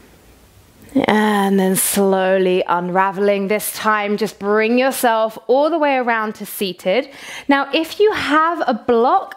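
A young woman speaks warmly and clearly, close to a microphone.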